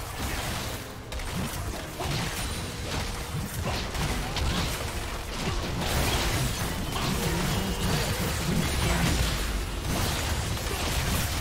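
Magic spells crackle and burst during a fight.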